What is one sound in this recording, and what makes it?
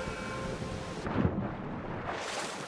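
A body plunges into water with a loud splash.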